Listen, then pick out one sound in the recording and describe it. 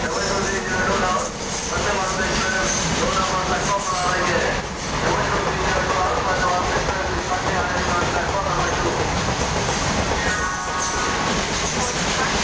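Train wheels squeal against the rails.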